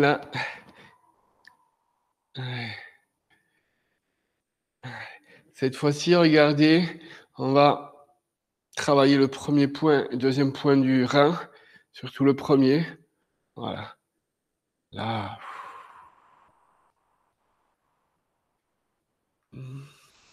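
A middle-aged man speaks calmly and clearly in a room with slight echo.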